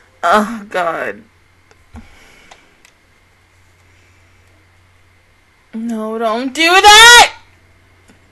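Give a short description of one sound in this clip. A young woman speaks expressively into a close microphone, her voice rising in pitch.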